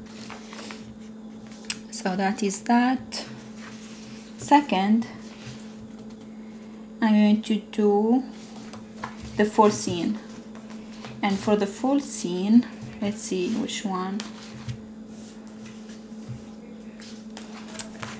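Sticker sheets rustle and crinkle as hands handle the paper.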